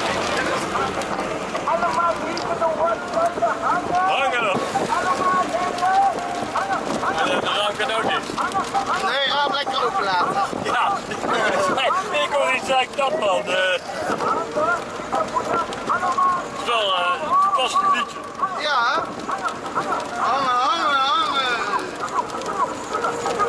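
A middle-aged man talks loudly and with animation close by.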